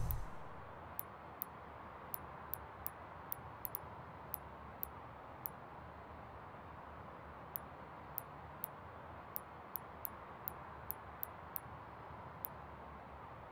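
Short, crisp menu clicks tick one after another as selections change.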